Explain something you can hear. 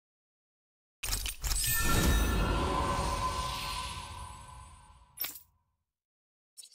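A deep whooshing chime swells and fades as a skill unlocks.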